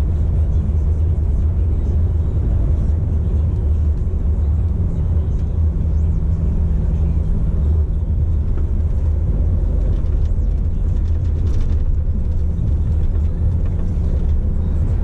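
Tyres roll and hum on the road.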